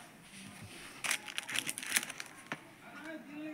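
Plastic disc cases rustle and clack as they are handled.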